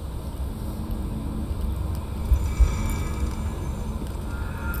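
A magical shimmer swells and sparkles.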